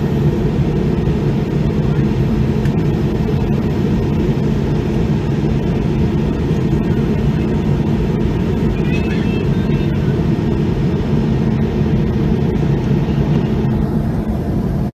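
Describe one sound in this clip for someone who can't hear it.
A jet engine drones steadily, heard from inside the cabin.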